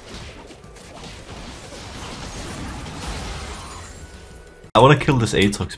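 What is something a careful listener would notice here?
Game sound effects clash and whoosh.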